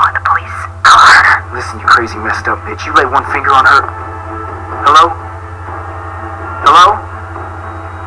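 A young man speaks tensely and threateningly into a phone.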